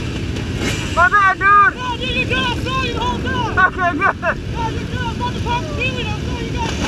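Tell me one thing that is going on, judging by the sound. Motorcycle engines rev sharply nearby.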